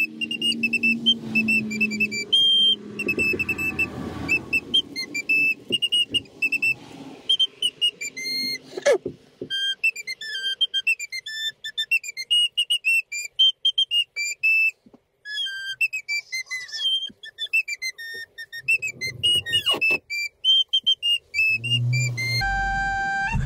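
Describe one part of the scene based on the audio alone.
A man plays a quick, high tune on a recorder.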